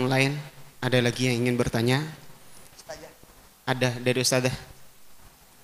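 A man speaks into a microphone in a slow, chanting voice, heard through loudspeakers in an echoing room.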